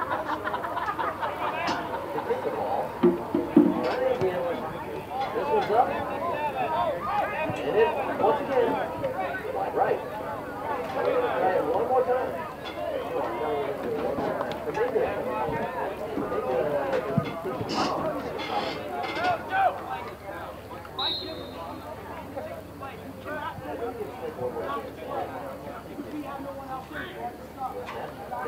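A crowd of players and spectators talks and calls out outdoors, near and far.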